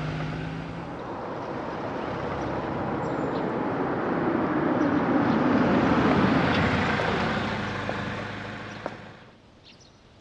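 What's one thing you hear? A car engine hums as a car drives slowly past.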